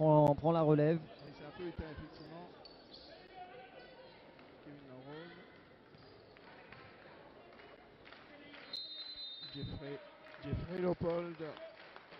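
A volleyball bounces on a wooden floor in a large echoing hall.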